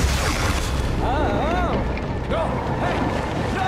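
A man grunts and speaks with strain, close by.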